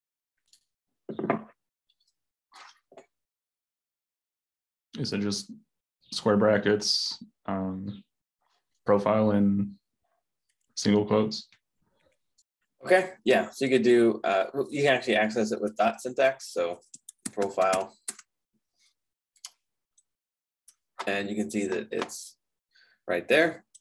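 A man speaks calmly and close, heard through a computer microphone.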